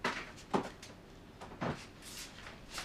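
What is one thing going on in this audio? A fridge door opens and shuts with a thud.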